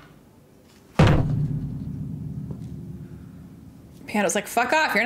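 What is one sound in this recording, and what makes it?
A piano chord is struck loudly and rings out slowly.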